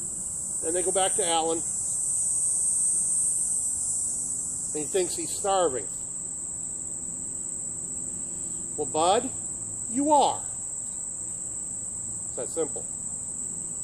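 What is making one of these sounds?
A man speaks close by in short, calm bursts.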